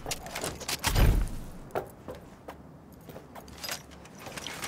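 A pistol fires several shots.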